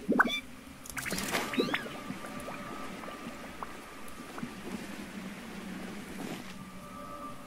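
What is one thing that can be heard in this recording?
Wind rushes steadily past while gliding through the air.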